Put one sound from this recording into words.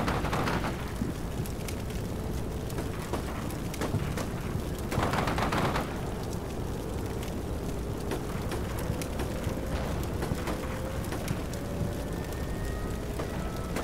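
Fire crackles and roars on a burning tank.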